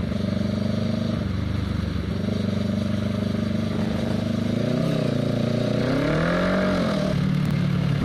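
A motorcycle engine rumbles close by, revving up and down as it rides.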